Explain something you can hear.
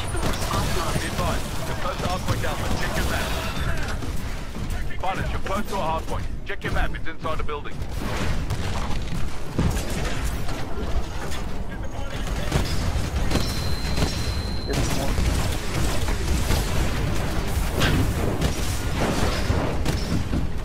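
A heavy cannon fires in rapid bursts.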